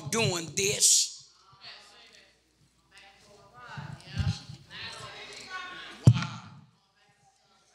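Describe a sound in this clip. An elderly man speaks with animation into a microphone, heard through a loudspeaker in an echoing hall.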